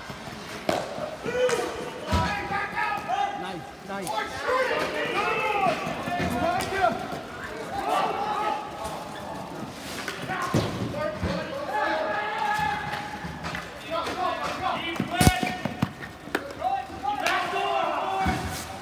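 Hockey sticks clack against a ball and against each other.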